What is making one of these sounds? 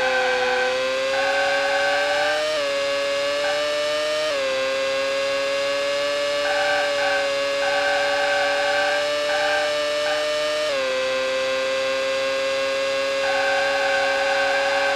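A racing car engine whines loudly, rising in pitch and dropping with each gear change.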